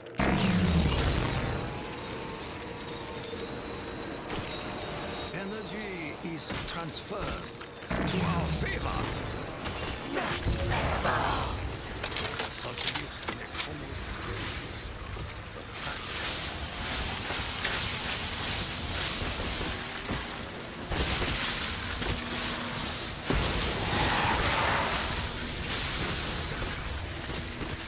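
Electricity crackles and zaps in bursts.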